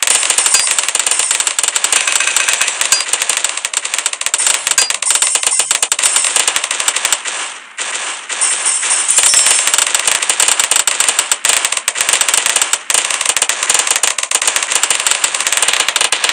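Rapid popping and crackling game effects fire nonstop.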